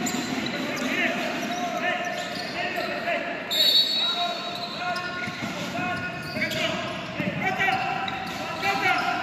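Sneakers squeak sharply on a hardwood court in a large echoing hall.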